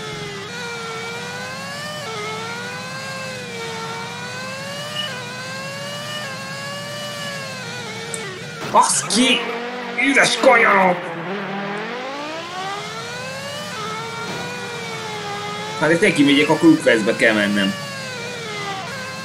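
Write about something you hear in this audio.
A racing car engine whines steadily, its pitch rising and falling with the speed.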